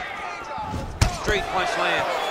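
A punch lands with a sharp thud.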